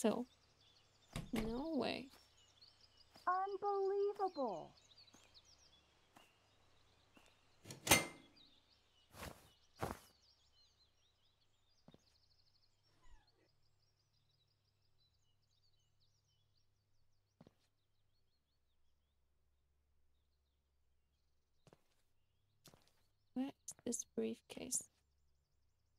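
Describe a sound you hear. A young woman speaks casually into a microphone, close by.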